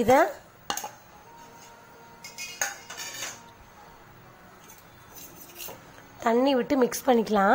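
A metal spoon scrapes and clinks against a steel bowl.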